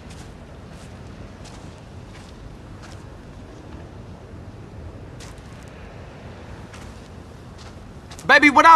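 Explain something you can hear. Footsteps tap softly on the ground.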